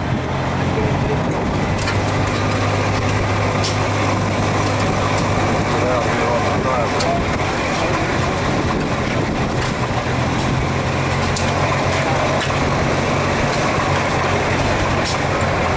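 Old stationary engines chug and hum steadily nearby.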